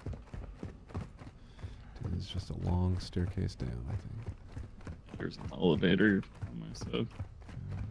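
Footsteps thud quickly up hard stairs.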